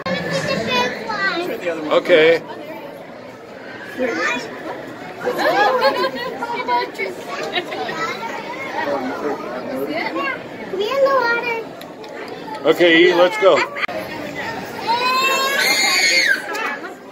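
Young children talk and call out excitedly close by.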